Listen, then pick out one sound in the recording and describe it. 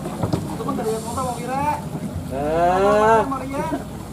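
Water splashes as a net scoops a fish.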